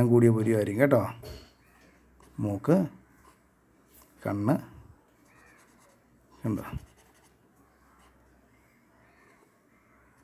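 A marker pen scratches softly across paper.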